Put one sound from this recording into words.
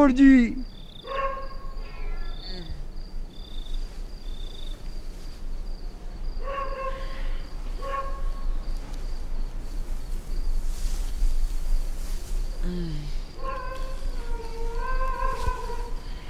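A man talks quietly, close by.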